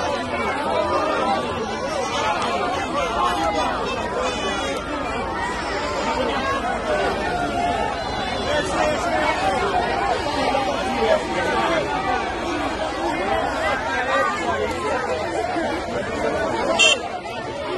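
A large crowd of men and women shouts and chatters excitedly outdoors.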